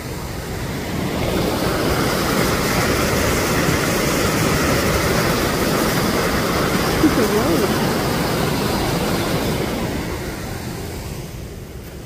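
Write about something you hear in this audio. A small waterfall splashes and rushes steadily nearby.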